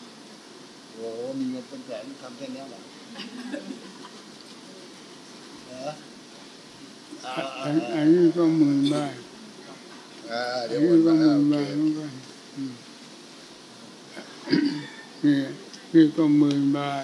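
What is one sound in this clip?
An elderly man speaks slowly and calmly into a microphone, in bursts with long pauses.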